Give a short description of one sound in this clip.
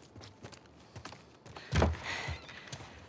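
A door bumps open with a thud.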